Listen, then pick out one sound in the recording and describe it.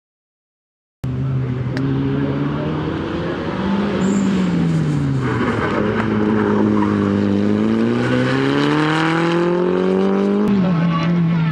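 A rally car's engine revs hard as it races past through the gears.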